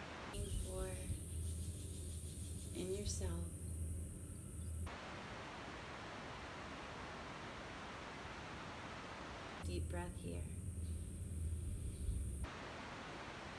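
A woman speaks calmly and softly.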